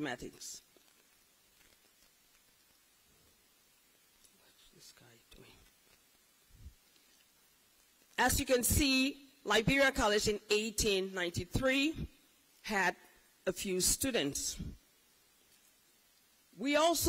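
A woman speaks through a microphone and loudspeakers in an echoing hall, pausing between phrases.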